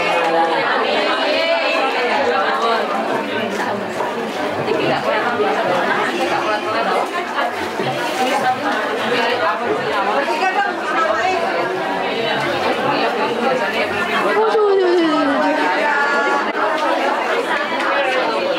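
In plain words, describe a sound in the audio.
A group of women chatter and laugh nearby.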